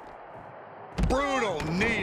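A body slams heavily onto a concrete floor.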